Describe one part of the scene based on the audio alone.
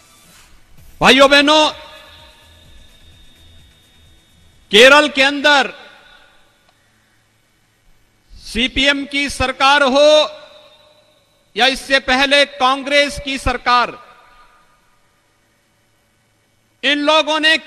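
A middle-aged man speaks forcefully into a microphone in short bursts, echoing through loudspeakers outdoors.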